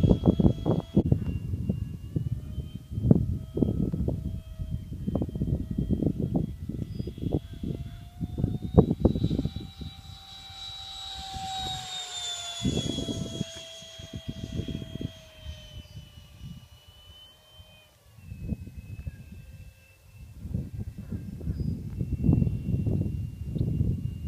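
A small model plane's engine whines high overhead, rising and then falling in pitch as it passes.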